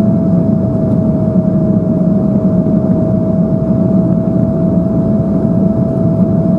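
Jet engines roar steadily with a low drone and a constant whine inside an airliner cabin.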